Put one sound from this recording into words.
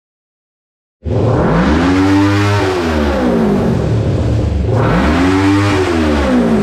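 A motorcycle engine revs loudly up and down close by.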